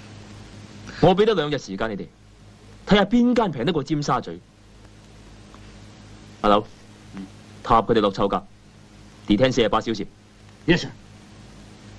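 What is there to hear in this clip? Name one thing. A young man speaks calmly and firmly nearby.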